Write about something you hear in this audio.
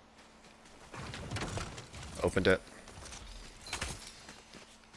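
Treasure chests creak open with a chiming sparkle.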